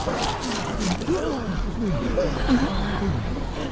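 A man speaks in a gruff, exaggerated cartoon voice.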